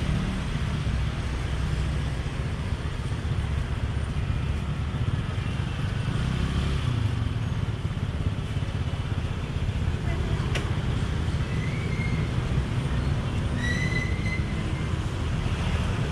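A knife scrapes and slices through pineapple flesh.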